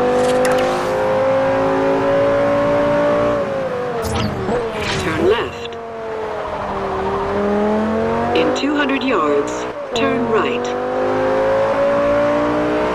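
A powerful car engine roars at speed, drops in pitch as the car slows, then revs up again.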